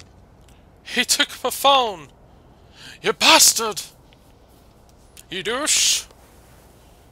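A man shouts loudly and angrily nearby.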